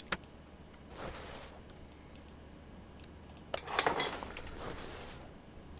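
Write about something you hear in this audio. Metal engine parts clank and rattle.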